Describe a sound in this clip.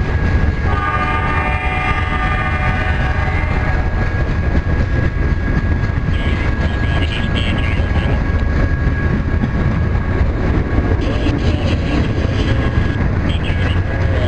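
A long freight train rumbles past close by, its wheels clattering on the rails.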